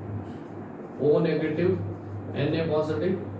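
A man speaks calmly nearby, as if explaining.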